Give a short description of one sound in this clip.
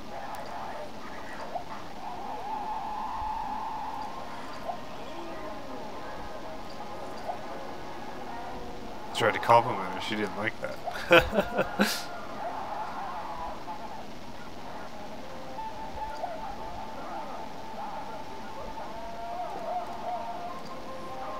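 Soft game music plays from a television.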